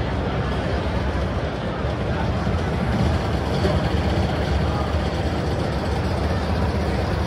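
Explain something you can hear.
Loud music with a heavy beat plays through loudspeakers.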